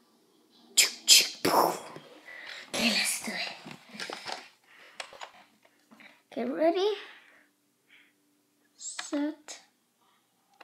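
A toy dart blaster fires with sharp snapping pops.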